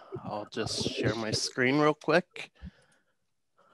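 A man speaks calmly through a headset microphone over an online call.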